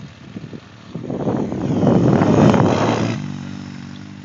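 An all-terrain vehicle engine roars loudly close by as it passes.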